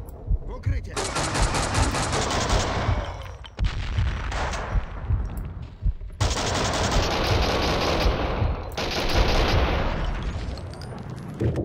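An automatic rifle fires in rapid, loud bursts indoors.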